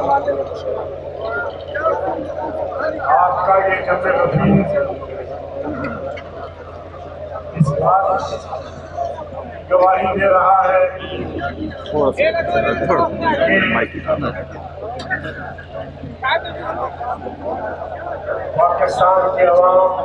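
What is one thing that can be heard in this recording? A crowd chants and shouts together outdoors.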